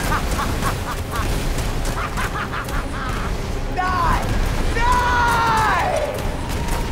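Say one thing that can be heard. Rushing magic blasts hiss.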